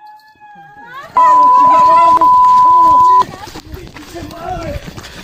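A young woman shouts in fright nearby.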